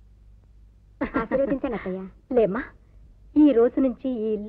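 A woman speaks warmly and with feeling, close by.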